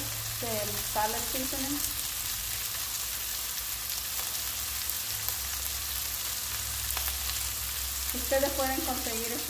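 Food sizzles steadily in hot pans.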